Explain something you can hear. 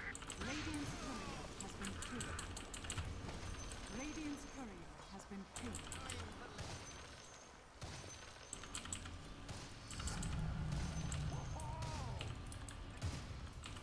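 Fighting sound effects clash and crackle in a video game.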